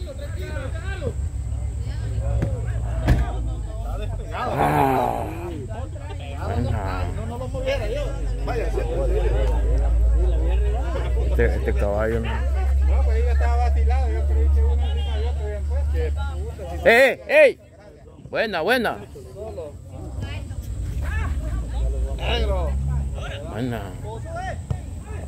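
Men shout and call to each other in the distance outdoors.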